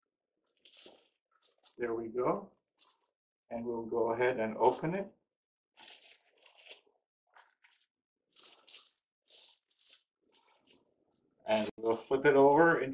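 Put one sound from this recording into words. Plastic wrap crinkles and rustles as it is handled.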